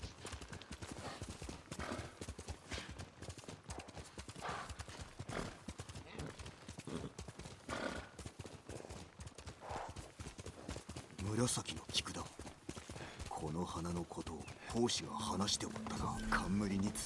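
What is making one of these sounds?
A horse gallops, its hooves thudding quickly on soft ground.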